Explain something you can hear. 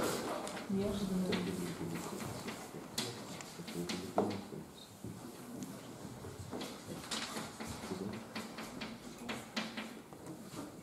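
A man speaks calmly in a room with some echo.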